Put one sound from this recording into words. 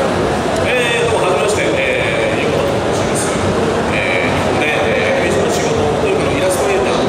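A man speaks calmly through a microphone and loudspeakers in an open space.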